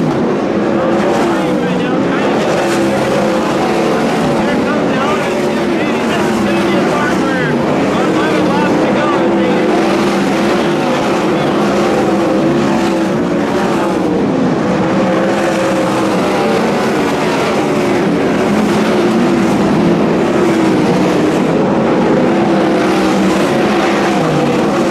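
Several racing car engines roar loudly, their pitch rising and falling as they speed around a track.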